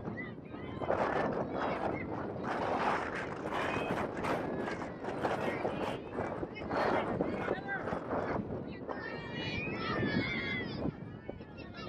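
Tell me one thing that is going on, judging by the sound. A soccer ball thuds as players kick it.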